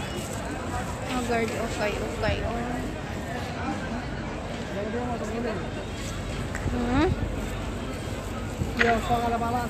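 A young woman talks close by, muffled.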